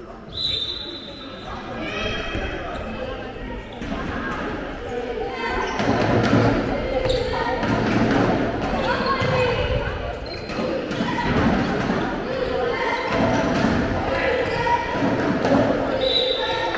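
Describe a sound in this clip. Shoes squeak sharply on a hall floor.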